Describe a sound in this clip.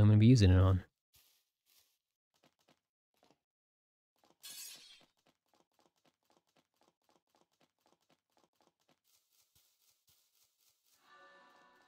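Quick light footsteps patter on the ground.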